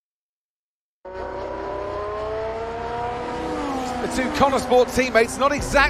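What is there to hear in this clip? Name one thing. A racing car engine roars and revs.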